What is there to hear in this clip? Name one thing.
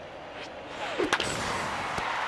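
A baseball bat cracks against a ball in a video game.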